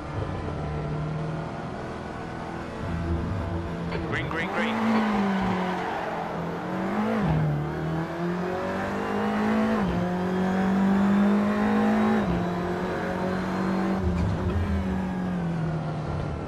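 A racing car engine roars and changes pitch as it shifts gears.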